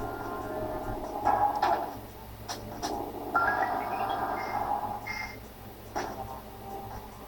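Electronic video game music plays throughout.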